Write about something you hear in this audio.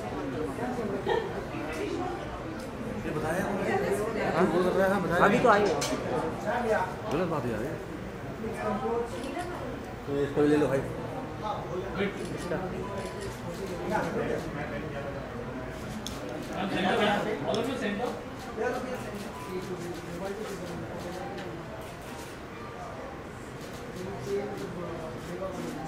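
Women chat with one another close by.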